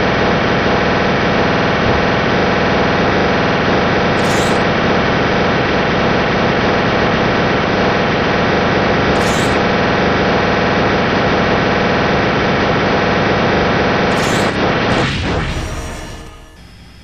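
Laser shots fire rapidly from a spaceship in a game.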